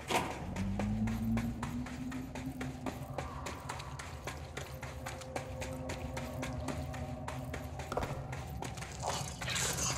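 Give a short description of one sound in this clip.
Quick footsteps run over rocky ground in an echoing cave.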